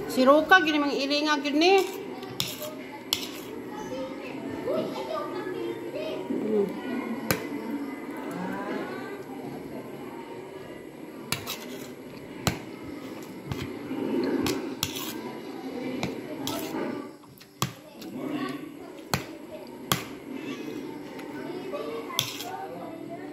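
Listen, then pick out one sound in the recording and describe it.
A spoon clinks and scrapes against a plate.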